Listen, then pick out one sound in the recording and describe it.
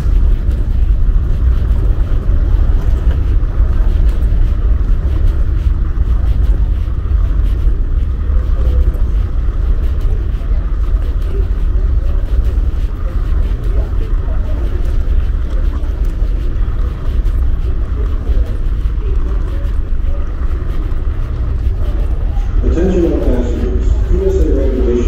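Suitcase wheels roll over a hard floor.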